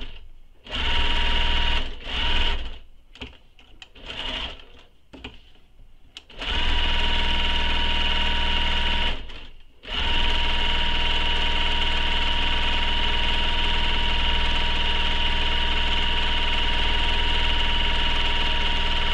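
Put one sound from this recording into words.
A sewing machine hums and whirs in short bursts, then runs steadily.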